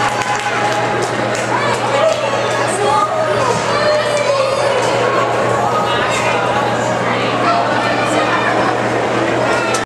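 A crowd of children chatter and shout excitedly in an echoing arena.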